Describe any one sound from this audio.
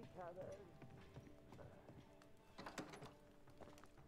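A wooden door creaks open.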